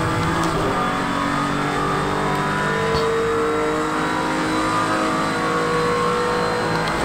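A racing car engine roars steadily at high speed, its pitch shifting with gear changes.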